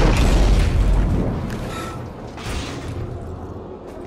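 Debris clatters and scatters across a hard floor.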